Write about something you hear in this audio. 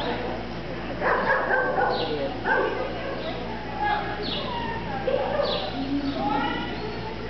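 A woman calls out commands to a dog with animation in a large echoing hall.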